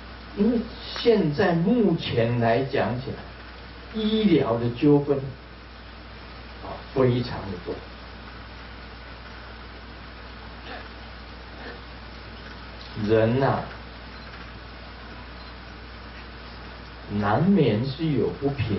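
An elderly man speaks calmly into a microphone, with long pauses.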